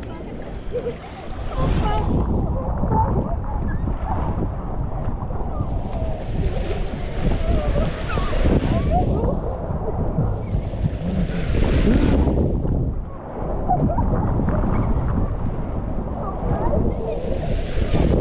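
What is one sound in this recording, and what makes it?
Rushing water splashes loudly around a raft sliding down a water slide.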